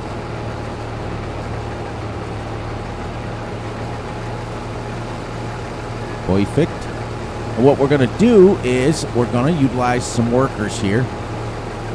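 Crop rustles as a combine harvester cuts through it.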